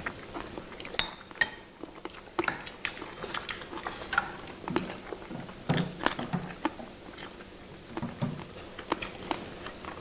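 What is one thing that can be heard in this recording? People chew and smack their lips up close.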